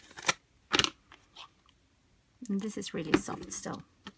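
A lid taps and clicks against a small tin.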